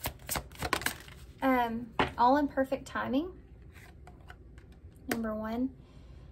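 A card slides and taps onto a table.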